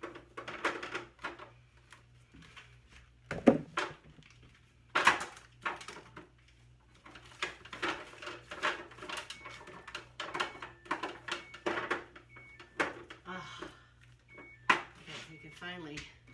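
Jars and bottles clink and knock on fridge shelves.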